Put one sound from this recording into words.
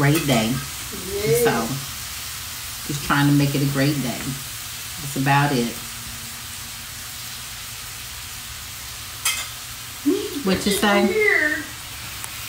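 A woman talks casually and close up in short bursts.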